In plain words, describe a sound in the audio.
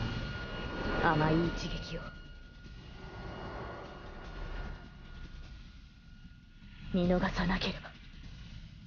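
A young woman speaks tensely and close by.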